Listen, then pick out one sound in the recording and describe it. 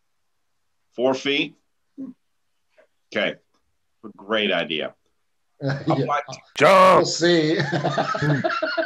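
Men talk and laugh over an online call, heard through microphones.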